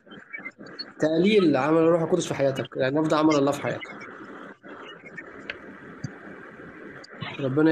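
A young man speaks close to a phone microphone, with animation.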